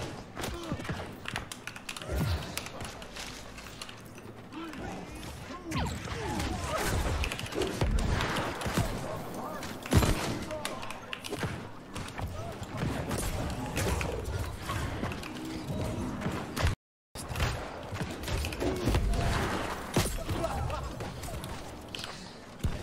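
Weapons strike and thud against enemies.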